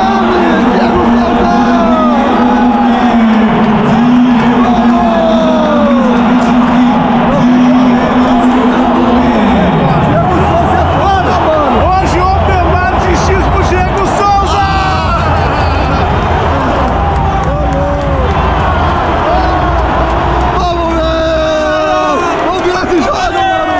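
A large stadium crowd sings and chants loudly, echoing through the stands.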